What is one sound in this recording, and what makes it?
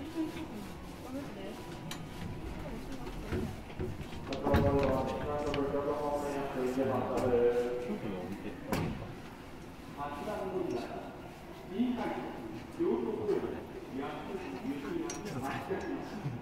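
An electric commuter train hums while standing at a platform.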